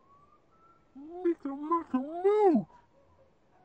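A small toy creature makes high, cooing squeaks.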